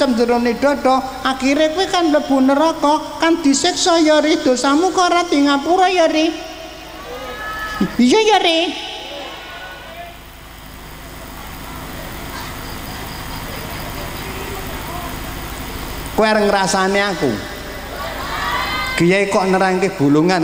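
An elderly man speaks slowly and with feeling into a microphone, heard through loudspeakers.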